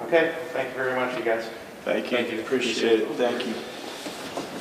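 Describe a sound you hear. A man speaks into a microphone.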